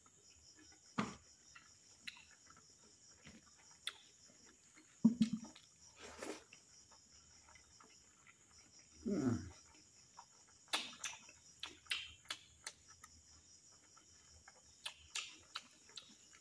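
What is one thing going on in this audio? Fingers squish and mix soft food close to a microphone.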